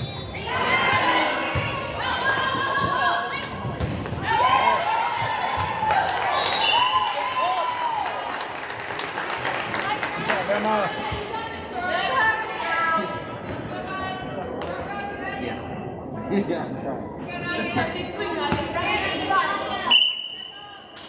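Young girls chatter and call out in a large echoing gym.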